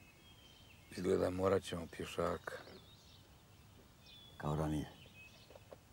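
An elderly man speaks calmly up close.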